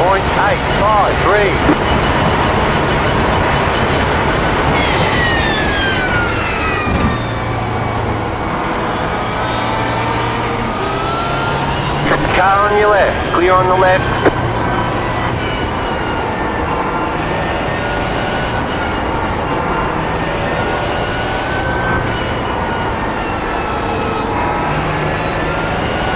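A racing car engine roars and whines, its pitch rising and falling with gear changes.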